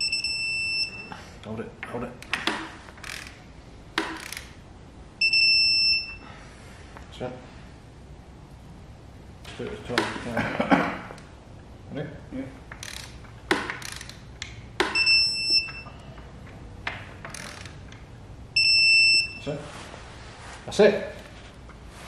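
A ratchet wrench clicks in short bursts.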